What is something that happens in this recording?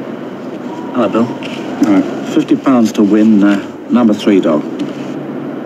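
A man speaks animatedly at close range.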